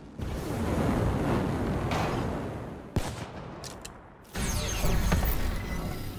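A weapon clicks and clatters as it is swapped.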